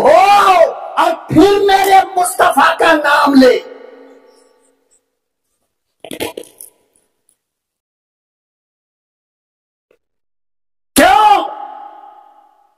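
A man preaches forcefully into a microphone over loudspeakers, his voice echoing.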